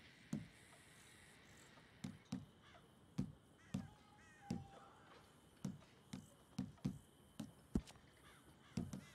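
Soft menu clicks tick again and again at an uneven pace.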